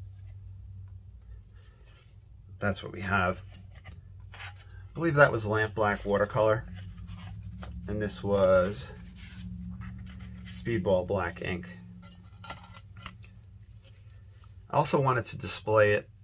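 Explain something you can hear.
Hands handle a stiff sheet of paper with soft rustles.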